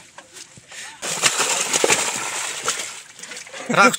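Water splashes as fish are poured into a pond.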